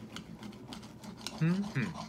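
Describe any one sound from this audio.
A knife scrapes across a plate.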